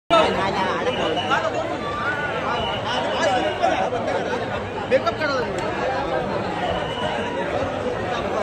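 A dense crowd of men and women chatter and call out all around, close by.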